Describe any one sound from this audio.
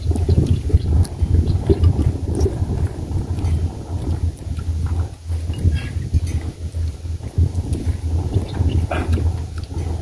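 Chopsticks click against bowls.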